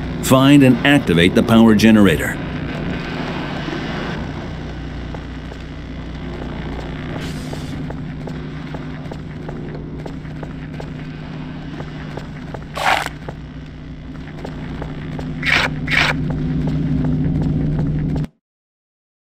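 A low, steady machine hum drones.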